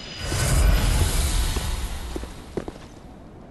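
A burst of fire roars and fades.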